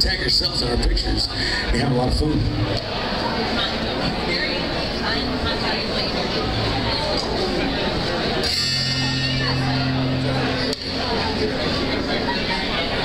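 A live band plays rock music with electric guitars and drums.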